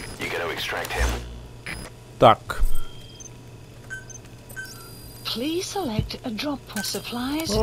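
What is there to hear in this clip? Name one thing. Soft electronic beeps sound from a menu.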